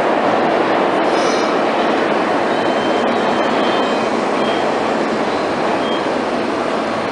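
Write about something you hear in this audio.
A train's brakes squeal as it slows.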